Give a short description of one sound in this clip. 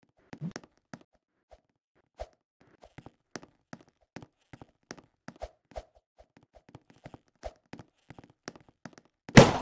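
Footsteps tap lightly on a wooden floor.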